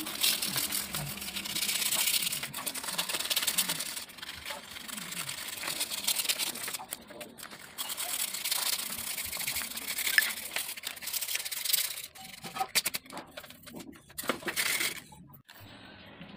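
A metal blade scrapes and files against plastic.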